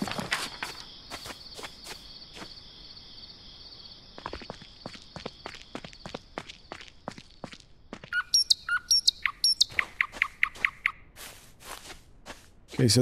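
Footsteps crunch steadily over the ground.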